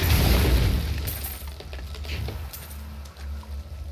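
Magic blasts crackle and burst during a fight.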